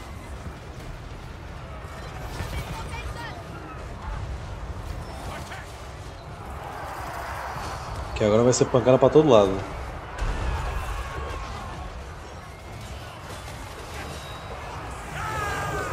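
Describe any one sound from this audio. Battle noise rumbles steadily.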